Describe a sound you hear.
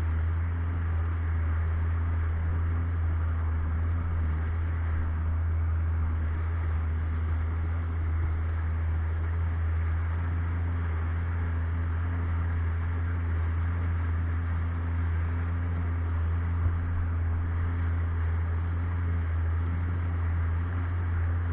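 Water splashes and rushes against the hull of a small boat.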